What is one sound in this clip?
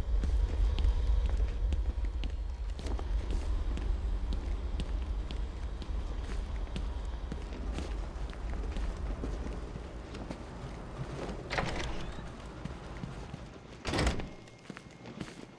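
Heavy footsteps tread on a hard floor.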